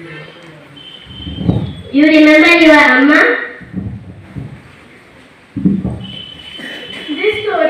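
A girl speaks loudly into a microphone through a loudspeaker.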